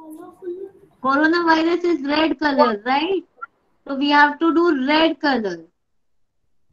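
A young girl speaks over an online call.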